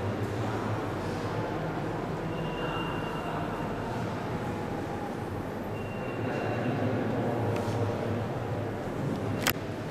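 Visitors' voices murmur softly in a large echoing hall.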